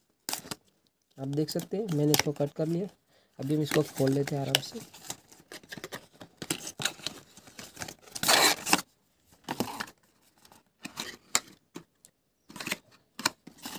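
Cardboard rustles and scrapes as hands open a box.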